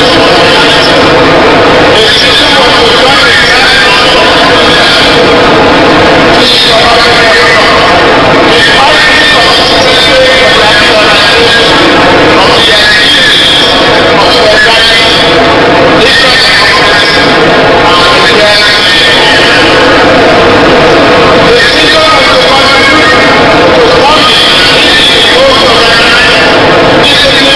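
A man reads out a speech loudly through a microphone and loudspeakers, echoing in a large space.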